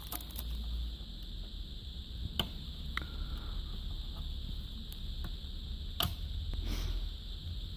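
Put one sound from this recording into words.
A cable connector clicks against a metal panel.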